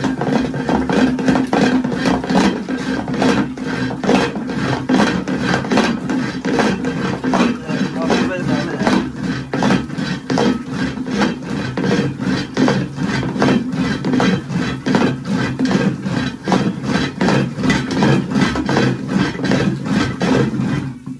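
A wooden churning stick knocks and swishes rapidly inside a metal pot.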